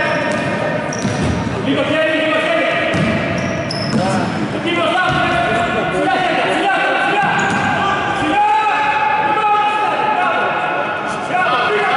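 A man shouts loudly to players across an echoing hall.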